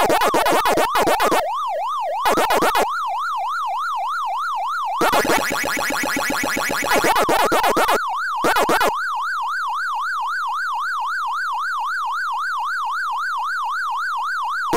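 A rising and falling electronic siren wails steadily.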